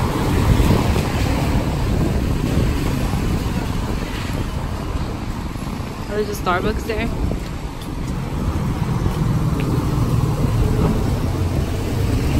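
Rain patters on wet pavement.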